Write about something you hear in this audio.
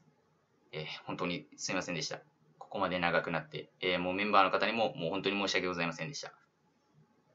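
A young man speaks calmly and close to a microphone.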